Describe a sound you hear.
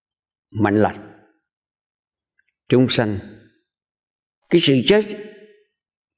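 An elderly man speaks calmly and slowly into a close microphone, in short phrases with pauses.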